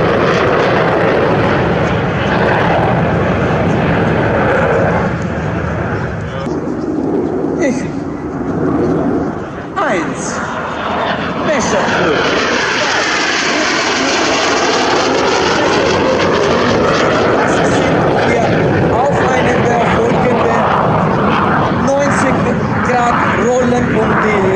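Jet engines roar loudly overhead.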